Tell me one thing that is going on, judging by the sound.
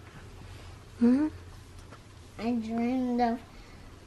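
A young boy speaks softly and close by, telling something.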